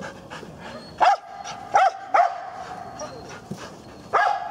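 A large dog barks sharply.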